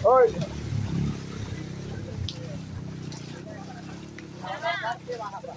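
Feet slosh and wade through shallow flowing water.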